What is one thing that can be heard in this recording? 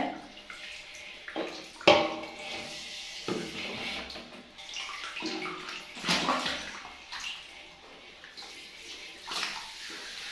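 Water sprays from a shower head and splashes.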